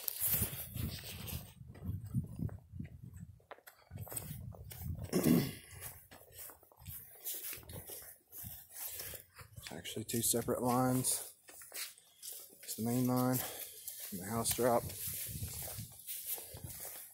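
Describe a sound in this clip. Footsteps tread over grass and crunch dry leaves.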